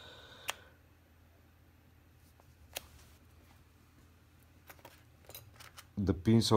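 Small plastic and metal parts click as a key blade is fitted into a key fob.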